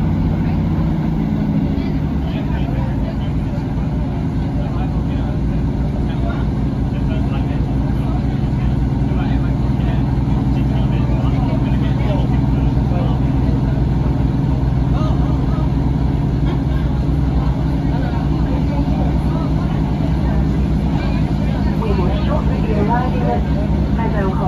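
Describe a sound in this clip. Train wheels clatter rhythmically over the rails.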